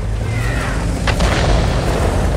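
A shell explodes with a sharp blast.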